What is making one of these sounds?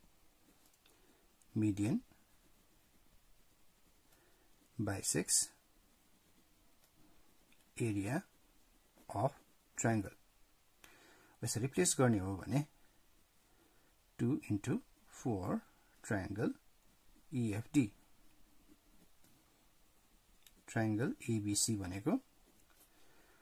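A pen scratches softly across paper as it writes.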